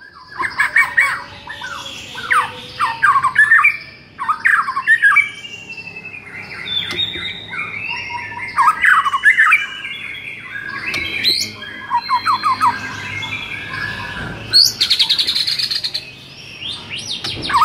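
A songbird sings a loud, varied song of fast whistles and chirps close by.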